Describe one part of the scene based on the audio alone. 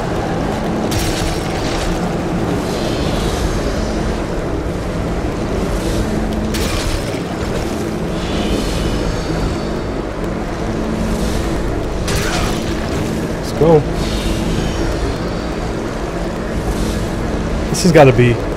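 Blades whoosh and slash through the air.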